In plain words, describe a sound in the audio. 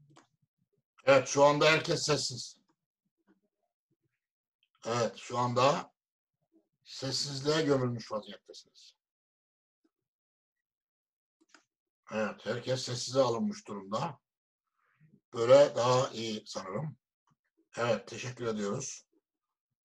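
A middle-aged man recites slowly and melodiously over an online call, with pauses between phrases.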